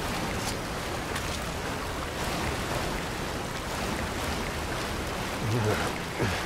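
Water sloshes and splashes as someone wades through it.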